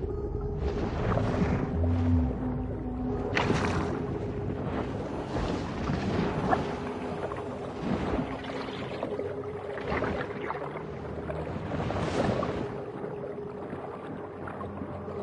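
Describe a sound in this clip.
Water swooshes in bursts as a fish darts along underwater.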